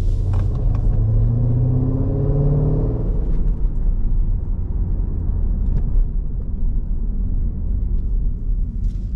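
Tyres rumble steadily on the road from inside the car.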